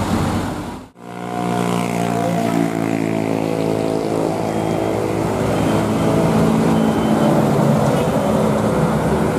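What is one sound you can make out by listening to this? A second loaded diesel dump truck climbs a hill under load.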